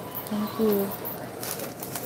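A paper bag rustles.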